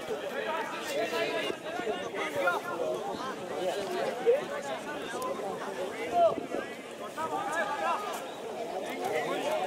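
Men shout and call out to each other across an outdoor field.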